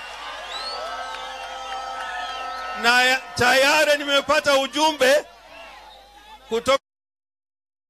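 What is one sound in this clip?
A man shouts forcefully through a microphone and loudspeakers outdoors.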